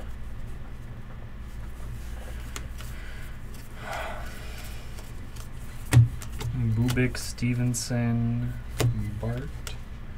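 Trading cards slide and flick against each other.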